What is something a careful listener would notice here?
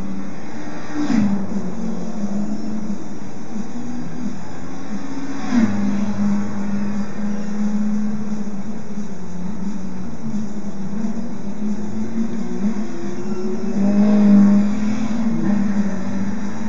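Racing car engines rise and fall in pitch as the cars shift gears.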